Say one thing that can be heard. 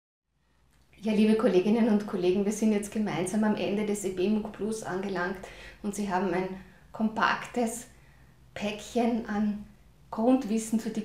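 A middle-aged woman speaks calmly and cheerfully, close to a microphone.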